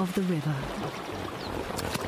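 Water splashes as a hippo drinks.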